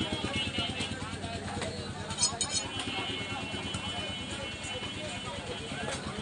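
A blade scrapes across a wooden block.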